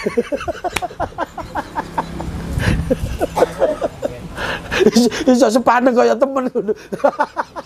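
A man laughs heartily close by.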